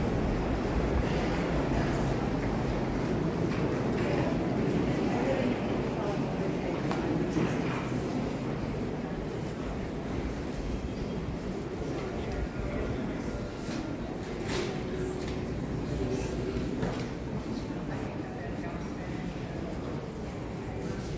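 A low murmur of shoppers fills a large echoing hall.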